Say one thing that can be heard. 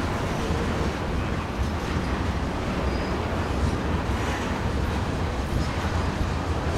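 Freight cars rumble and clatter steadily along a track close by.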